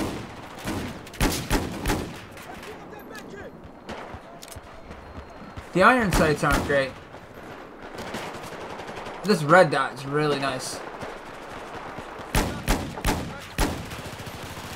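A pistol fires sharp shots in quick bursts.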